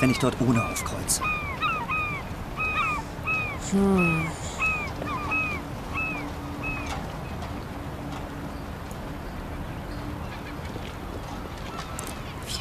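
Water laps gently against a wooden pier.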